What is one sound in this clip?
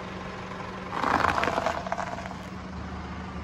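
A car tyre rolls over wafers and crushes them with a crunch.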